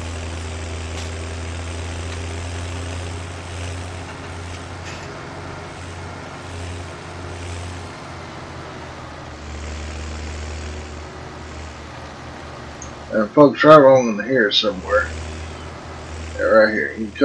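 A tractor engine rumbles steadily as it drives along.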